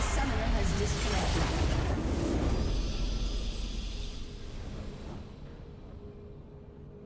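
A loud crashing explosion rumbles and fades away.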